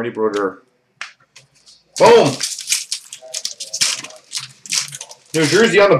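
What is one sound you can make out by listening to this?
Card wrappers crinkle and tear.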